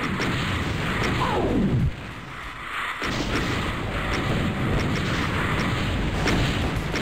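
Game gunfire and explosions boom rapidly and constantly.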